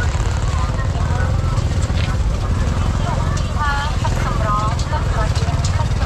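A crowd of men and women chatter nearby.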